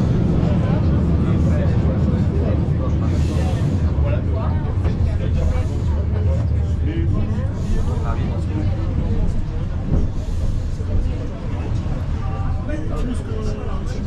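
Passengers chatter nearby inside the train car.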